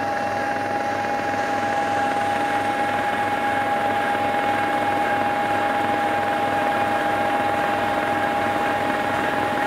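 Snow blasts out of a snow blower chute with a rushing hiss.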